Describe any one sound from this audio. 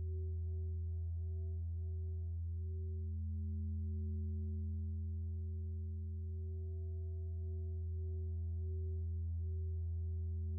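A modular synthesizer plays a low, steady drone with a soft wavering tone above it.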